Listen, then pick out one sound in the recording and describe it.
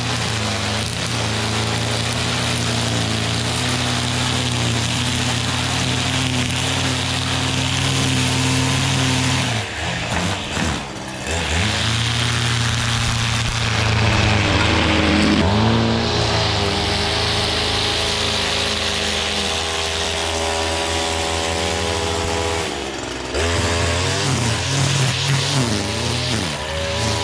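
Trimmer line whips and cuts through grass.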